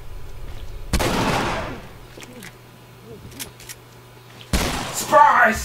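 A shotgun fires loudly, close by.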